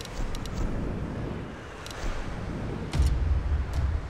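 Soft interface clicks sound as menu options change.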